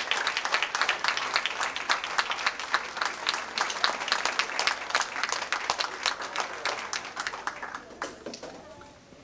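An audience claps and applauds in a large room, then the clapping fades away.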